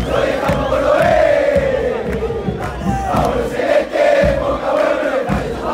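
Hands clap in rhythm among a crowd.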